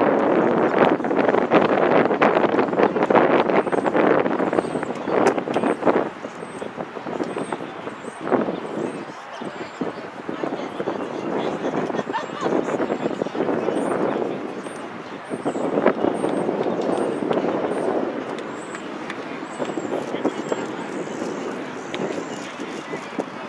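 A team of young players chants and shouts together in a huddle outdoors.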